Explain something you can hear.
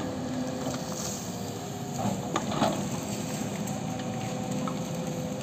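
Diesel engines of heavy excavators rumble and hum steadily nearby.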